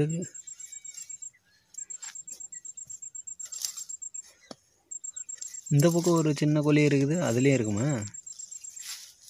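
Hands scrape and dig at dry soil.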